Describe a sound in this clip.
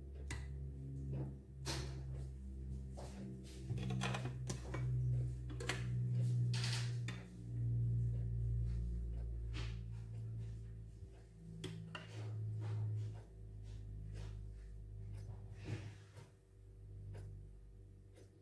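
Metal tongs clink against a plate and a glass dish.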